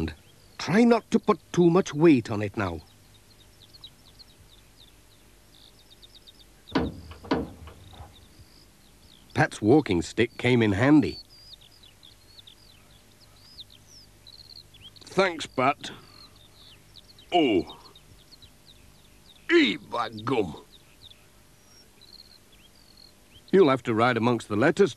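A man talks in short bursts.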